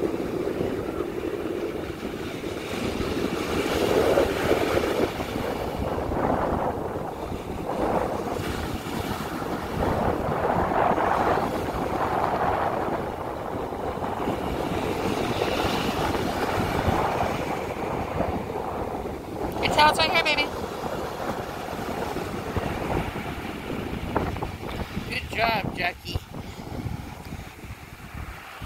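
Small waves break and wash in steadily nearby.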